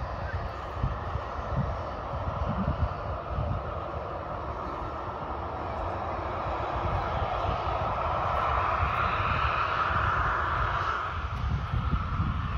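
A jet airliner's engines roar as it lands and rolls down a runway.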